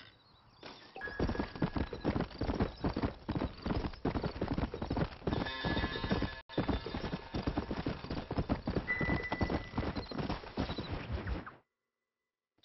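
Horse hooves gallop steadily on a dirt track.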